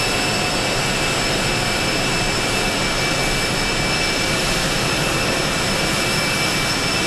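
An aircraft engine whines and roars steadily nearby.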